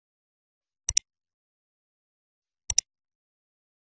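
A mouse button clicks sharply.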